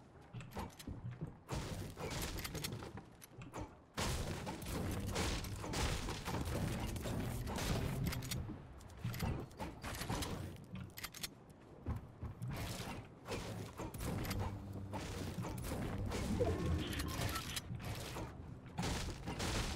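A pickaxe strikes wood with repeated sharp knocks.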